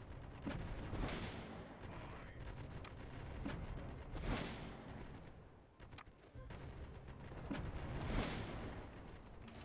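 Cannons fire in deep, rolling booms.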